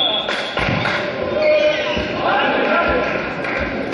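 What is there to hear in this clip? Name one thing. Players shout to each other on the court.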